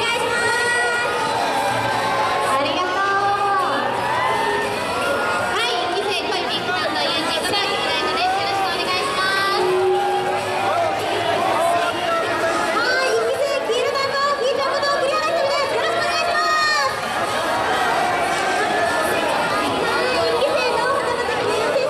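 Young women speak excitedly into microphones, heard through loudspeakers in an echoing hall.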